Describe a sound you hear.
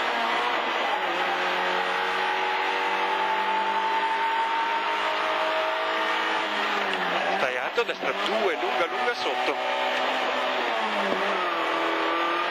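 A rally car's engine revs hard at full throttle, heard from inside the cabin.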